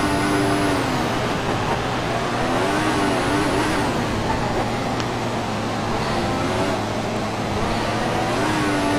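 A racing car engine drops in pitch and rasps as the car slows.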